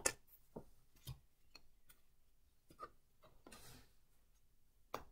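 Cards tap softly as they are laid down.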